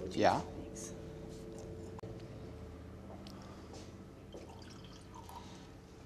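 Wine pours into a glass.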